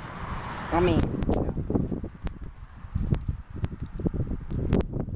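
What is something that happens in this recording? A padlock clinks and rattles against a chain-link gate.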